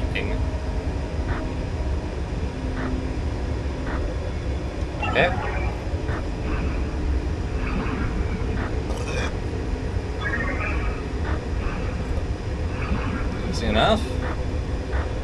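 Two young men talk and react excitedly into microphones.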